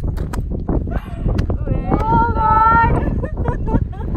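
Young women laugh and cry out with excitement.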